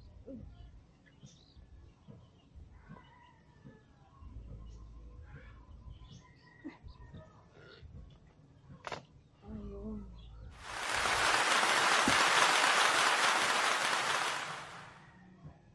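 Hands scrape and dig in loose soil.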